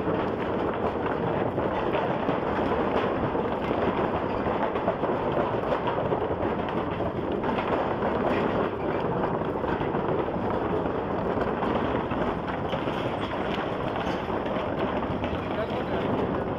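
Wind rushes loudly against the microphone.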